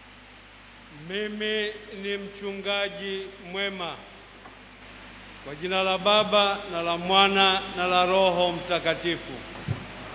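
A man speaks slowly and solemnly into a microphone in a large echoing space.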